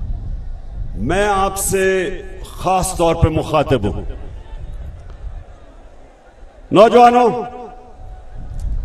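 A large crowd chants loudly in unison.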